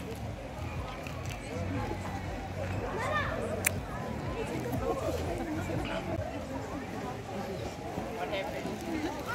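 A crowd of people chatter at a distance outdoors.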